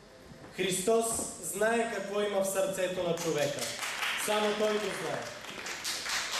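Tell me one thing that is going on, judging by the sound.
A young man reads aloud through a microphone.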